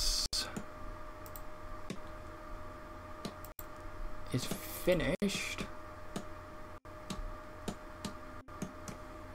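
Hammers knock on wood again and again.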